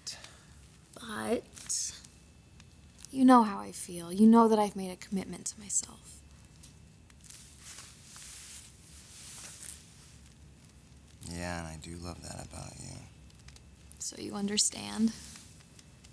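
A young woman speaks softly and with emotion close by.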